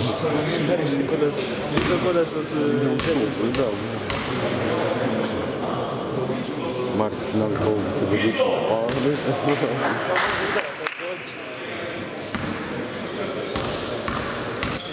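Men talk and chatter nearby in a large echoing hall.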